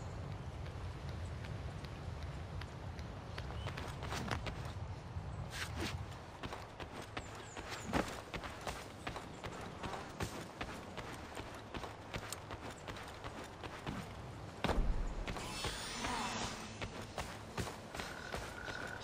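Footsteps patter quickly across stone.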